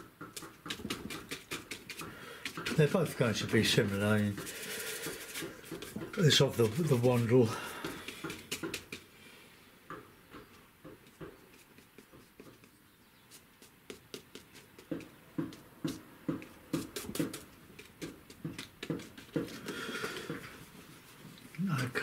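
A stiff brush dabs and taps quickly on paper.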